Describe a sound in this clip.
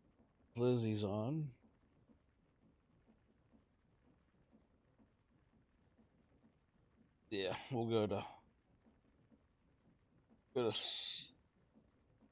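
A man speaks briefly into a close microphone, in short bursts.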